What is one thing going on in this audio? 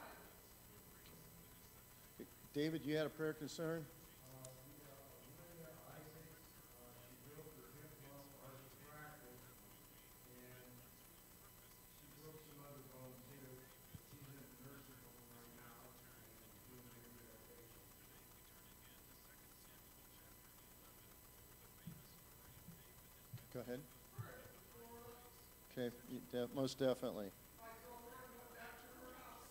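A middle-aged man preaches through a microphone in a large room, speaking with slow, deliberate emphasis.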